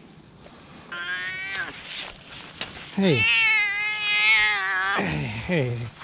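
A cat meows loudly, close by.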